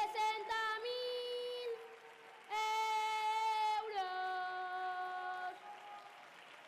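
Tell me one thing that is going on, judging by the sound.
A young boy sings in a loud, drawn-out chant through a microphone in a large echoing hall.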